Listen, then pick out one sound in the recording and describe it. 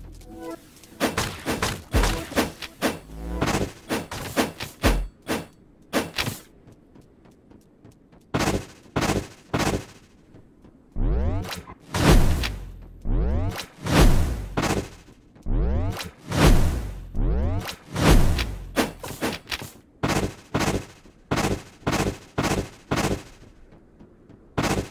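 Sword slashes whoosh in quick bursts.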